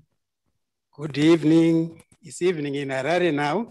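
A man speaks through an online call.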